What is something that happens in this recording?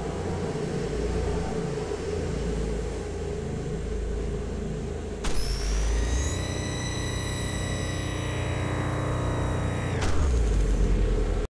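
A flying saucer's engine hums steadily.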